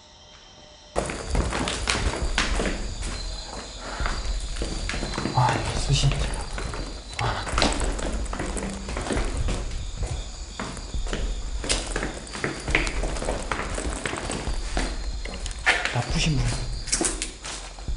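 Footsteps thud slowly down concrete stairs.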